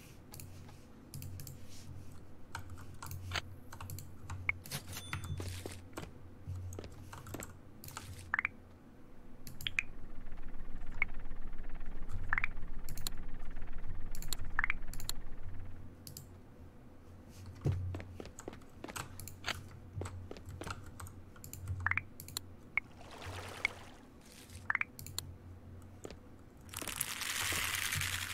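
Keys and a mouse click rapidly up close.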